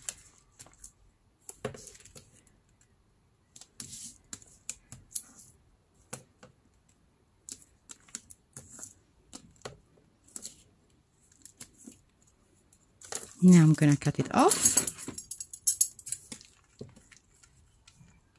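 Plastic film crinkles and rustles under hands.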